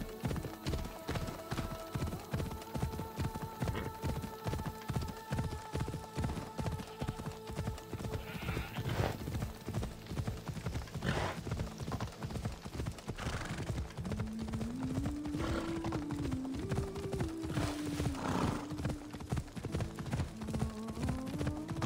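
A horse's hooves pound steadily at a fast gallop.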